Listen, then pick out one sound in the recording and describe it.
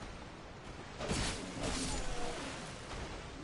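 A blade swooshes through the air and strikes.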